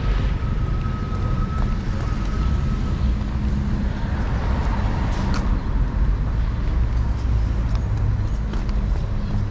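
Footsteps tap along a paved sidewalk outdoors.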